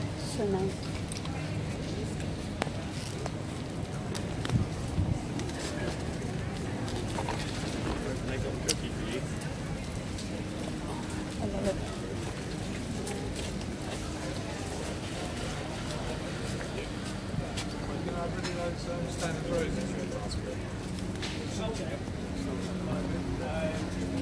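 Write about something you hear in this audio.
A crowd chatters at a distance outdoors.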